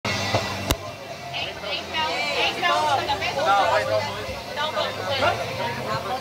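Several people talk over each other in a crowd.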